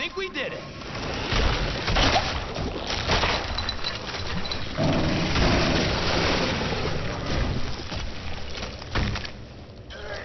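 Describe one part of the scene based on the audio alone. Loud rumbling blasts and crashes boom.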